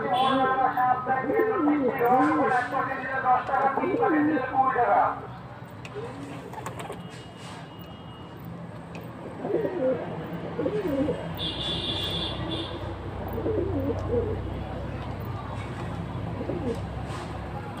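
Pigeons coo softly close by.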